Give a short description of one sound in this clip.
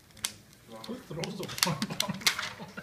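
Plastic film crinkles as it is peeled off.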